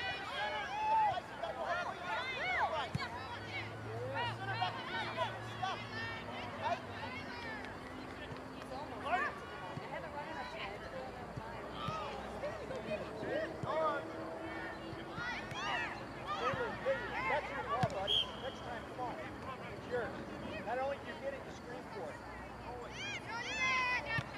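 A small crowd of adult spectators talks and calls out outdoors.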